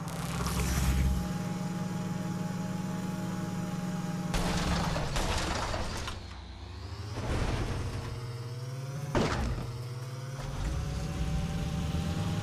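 A car engine hums steadily and revs up and down.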